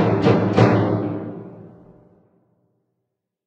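An orchestra strikes two final chords that ring out and fade in a large echoing hall.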